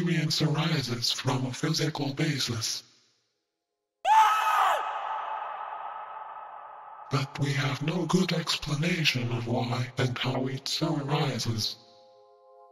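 A man speaks calmly through a loudspeaker.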